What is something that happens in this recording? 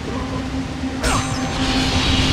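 A sharp burst cracks loudly.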